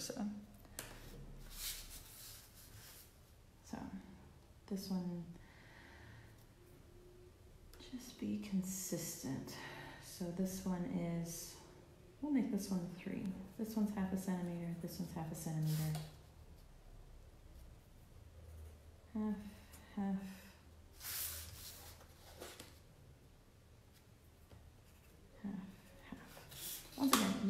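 A plastic ruler taps and slides on a table.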